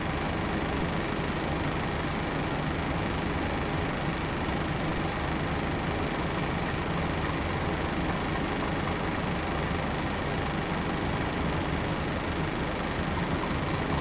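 Jet engines hum steadily at idle.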